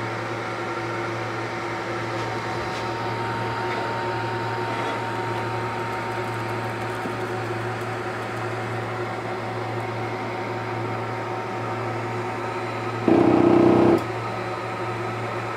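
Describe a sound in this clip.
A motorised engraving head whirs as it slides along its rails.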